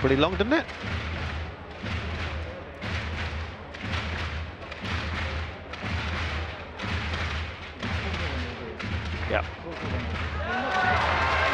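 A crowd of spectators claps in a large indoor arena.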